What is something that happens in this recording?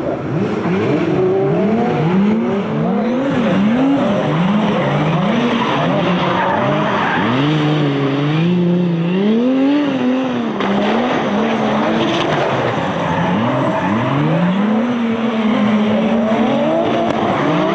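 Tyres screech on wet tarmac as cars slide.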